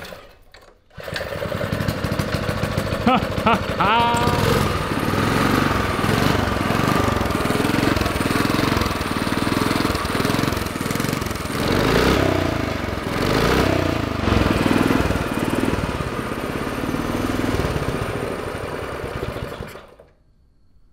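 A small motorbike engine starts and runs with a loud, rough rattle.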